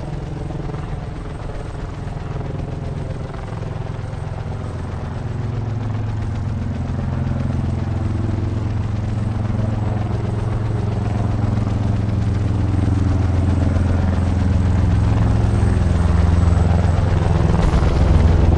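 Helicopter rotors thump and drone steadily, growing louder.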